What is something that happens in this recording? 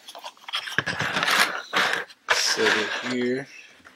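A plastic case is set down on a table with a light knock.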